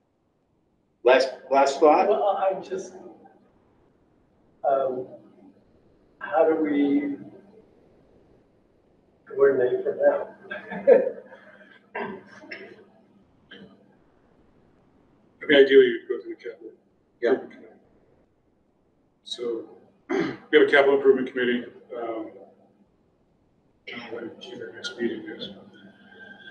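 A man speaks calmly into a microphone, heard through an online call, with pauses between phrases.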